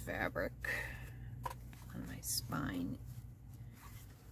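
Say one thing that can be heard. Fabric rustles as it is laid down and smoothed by hand.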